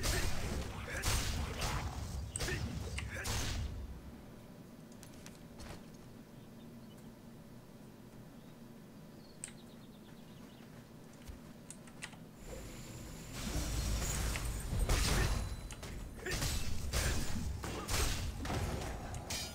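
Blades swoosh and strike in a fight.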